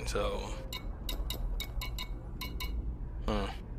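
Short electronic menu beeps tick in quick succession.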